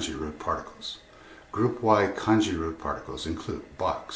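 An older man speaks calmly, close to the microphone.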